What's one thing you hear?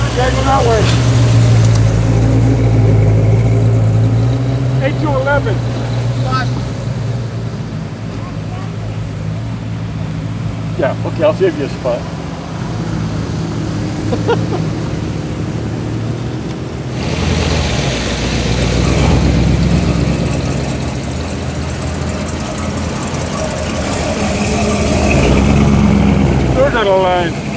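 Car engines rumble and growl as cars drive past one after another, close by.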